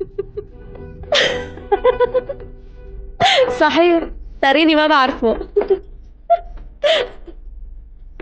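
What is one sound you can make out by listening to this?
A woman talks cheerfully close by.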